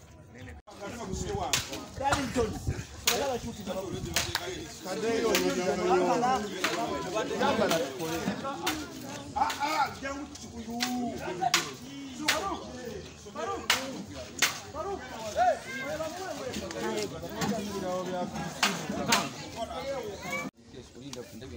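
Several men talk over each other loudly and with animation close by, outdoors.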